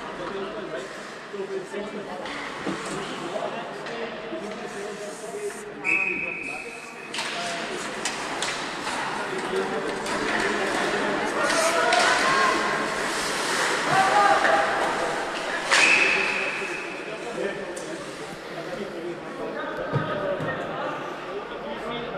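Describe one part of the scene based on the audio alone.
Skates scrape and hiss across the ice.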